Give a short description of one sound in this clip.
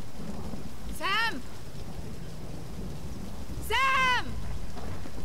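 A young woman calls out loudly, searching for someone.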